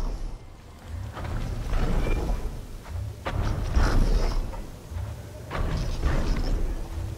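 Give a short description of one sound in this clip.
Footsteps crunch on sand.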